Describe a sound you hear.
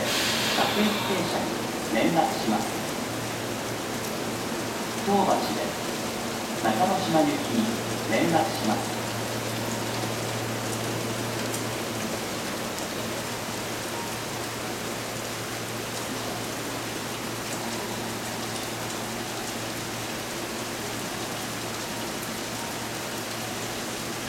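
A train rumbles slowly into a station.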